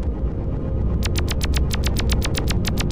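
A fast ticking beat joins the game music.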